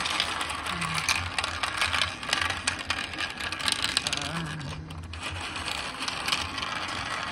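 A vacuum cleaner whirs and rattles over carpet.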